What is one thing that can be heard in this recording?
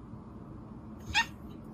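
A cat meows.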